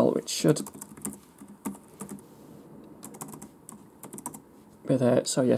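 Keys click on a keyboard as someone types.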